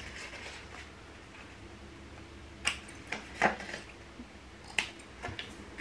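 Scissors snip through card.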